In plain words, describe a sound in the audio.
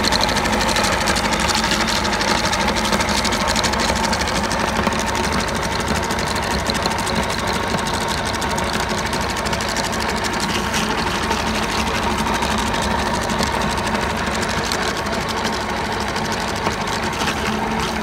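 An electric meat grinder hums and whirs steadily as it grinds meat.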